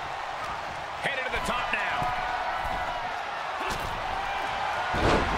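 Wrestlers' bodies slam hard onto a ring mat.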